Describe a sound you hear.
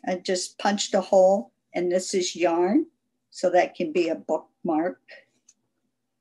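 An older woman talks calmly and close to the microphone.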